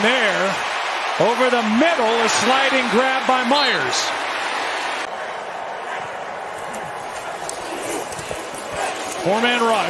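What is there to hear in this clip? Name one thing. A stadium crowd murmurs and cheers in a large open space.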